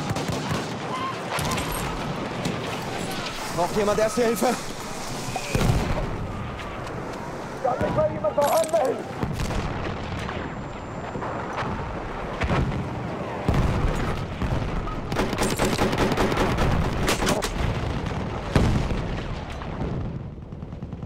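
Gunshots crack in rapid, echoing bursts.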